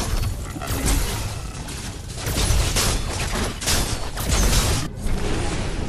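Weapons clash and strike in a close fight.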